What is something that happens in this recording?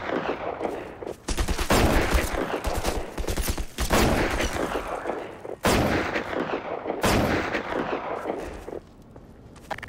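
Heavy gunshots fire repeatedly, echoing loudly.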